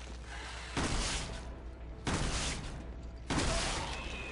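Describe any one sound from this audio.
A shotgun fires loud blasts, one after another.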